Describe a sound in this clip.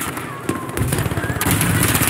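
Rapid gunshots crack loudly nearby.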